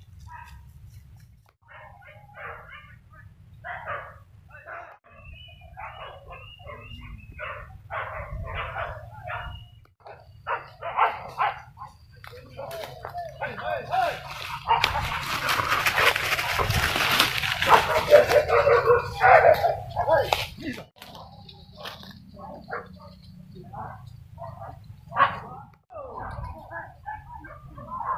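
A pack of hunting dogs barks excitedly in the chase.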